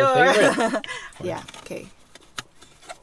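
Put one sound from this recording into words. A young woman laughs close by.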